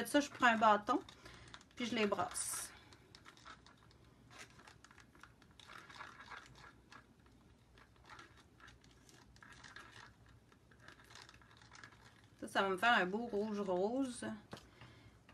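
A wooden stick stirs paint, scraping and tapping softly against a plastic cup.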